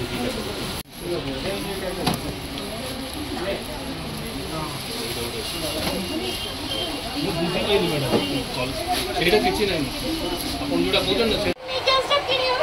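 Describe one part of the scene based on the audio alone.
Several men and women talk together nearby.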